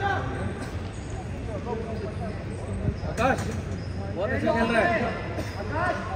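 Spectators and coaches shout encouragement in a large echoing hall.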